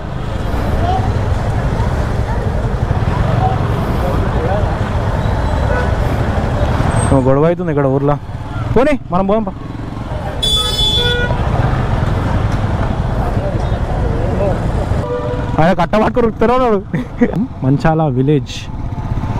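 A motorcycle engine rumbles up close.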